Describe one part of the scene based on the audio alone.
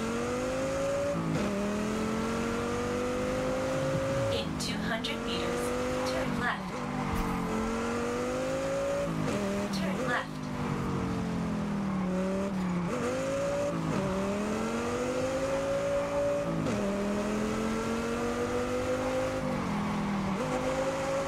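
A sports car engine revs hard, rising in pitch through each gear and dropping at every gear change.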